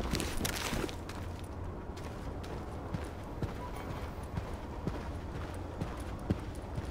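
Footsteps tap quickly on a hard floor indoors.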